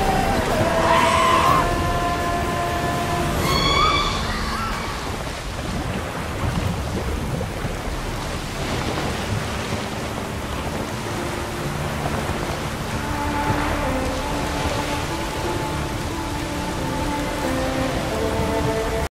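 Wind blows hard over the sea.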